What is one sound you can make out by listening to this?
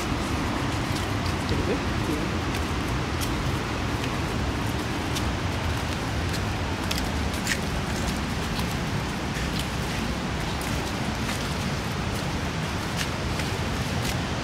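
Several people step over rocks and mud outdoors.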